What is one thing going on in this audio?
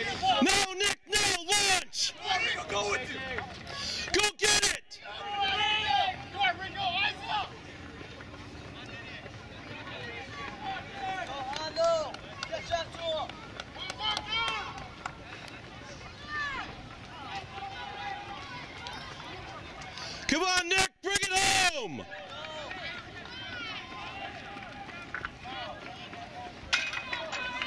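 Spectators cheer and shout outdoors.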